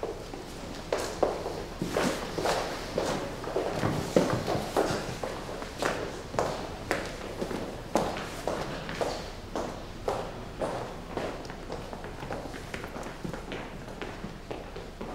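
Hard-soled shoes step briskly across a stone floor in an echoing hall.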